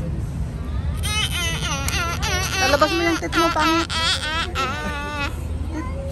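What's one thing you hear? A young boy screams loudly up close.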